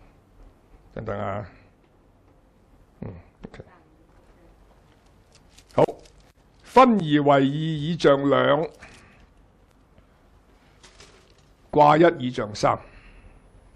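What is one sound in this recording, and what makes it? An elderly man speaks in bursts through a microphone, with pauses between phrases.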